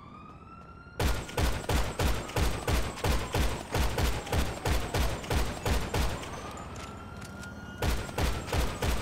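A rifle fires shots in rapid succession.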